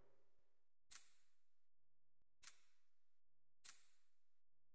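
Soft menu clicks tick in near silence.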